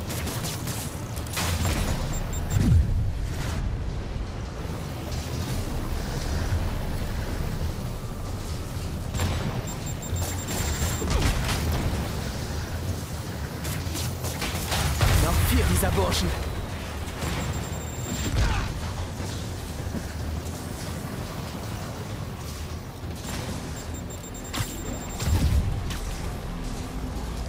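Thumps and whooshes sound as a figure leaps and lands.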